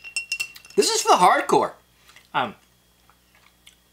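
Ice clinks in a glass as a spoon stirs it.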